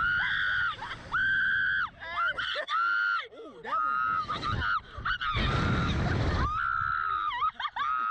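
A teenage boy laughs and shouts with excitement.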